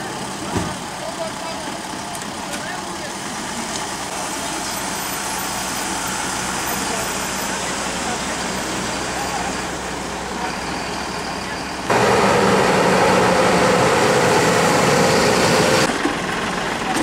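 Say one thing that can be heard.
Fire engines idle nearby with a steady rumble.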